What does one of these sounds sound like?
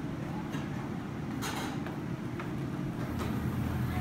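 A glass refrigerator door clicks open.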